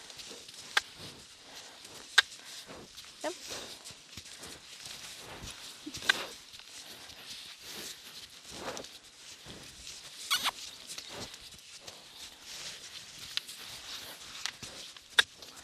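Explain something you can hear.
Horse hooves thud softly on sand.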